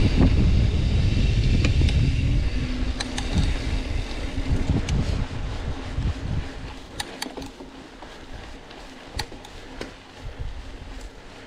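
A bicycle chain and frame rattle with sharp clicks over bumps.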